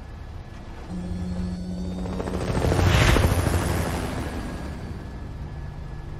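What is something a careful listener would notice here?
A helicopter's rotor thumps and roars loudly as it passes close by.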